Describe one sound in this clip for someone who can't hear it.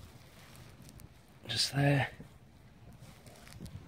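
A gloved hand rustles through grass and loose soil.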